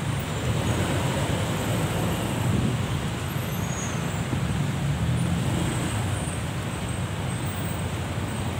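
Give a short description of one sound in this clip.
Tyres roll slowly over a wet road.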